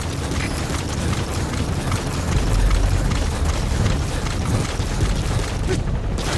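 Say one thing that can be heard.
Footsteps crunch through grass and brush at a steady walking pace.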